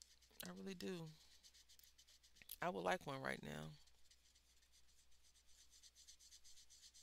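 A felt-tip marker scratches softly on paper.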